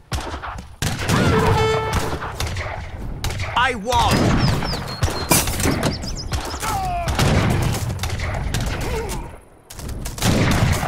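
Soldiers march across ground with clattering gear.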